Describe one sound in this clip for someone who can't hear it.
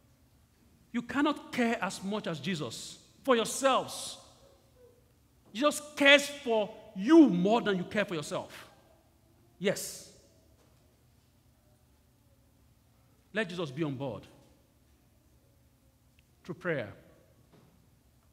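A man speaks with animation through a microphone, in short bursts with pauses, in a large echoing room.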